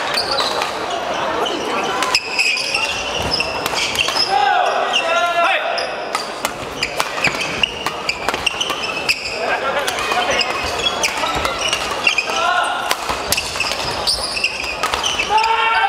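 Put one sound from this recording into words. Rackets smack a shuttlecock back and forth in quick rallies.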